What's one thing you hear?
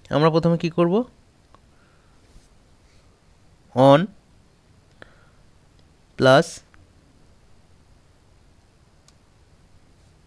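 Calculator buttons click softly as they are pressed.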